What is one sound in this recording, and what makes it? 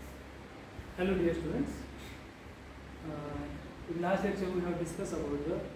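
A man speaks calmly to a room, lecturing in a slightly echoing space.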